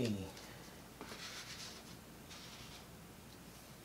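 Stiff paper rustles and slides softly under hands.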